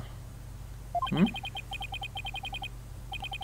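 Rapid electronic blips tick in a steady rhythm.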